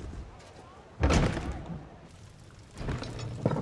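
A heavy door swings open with a loud thud.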